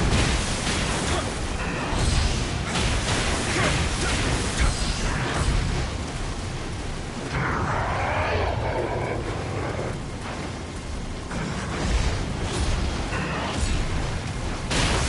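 Sword blows clash and strike with sharp impacts.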